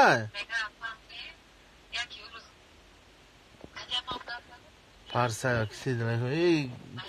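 A young man speaks close to a phone microphone, in short bursts.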